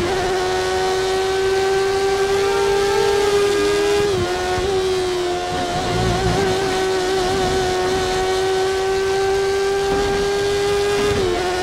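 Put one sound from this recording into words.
A racing car engine screams steadily at high revs, shifting pitch briefly now and then.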